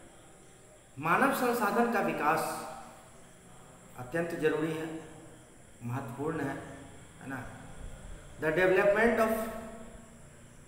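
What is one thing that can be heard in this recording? A man speaks calmly and clearly into a nearby microphone, in short bursts with pauses.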